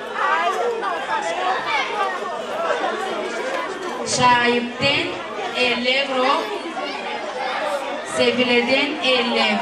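A woman speaks with animation into a microphone over a loudspeaker, in a large echoing hall.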